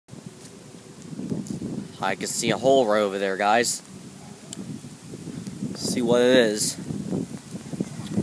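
Wind rustles softly outdoors.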